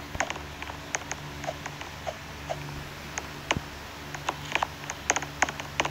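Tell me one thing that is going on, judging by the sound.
Footsteps tap quickly on wooden boards.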